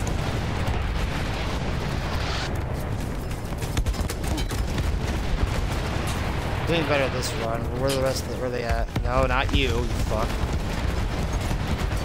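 A heavy anti-aircraft gun fires in rapid bursts.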